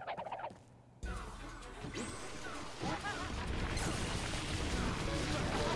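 Weapons clash and swoosh in a hectic fight.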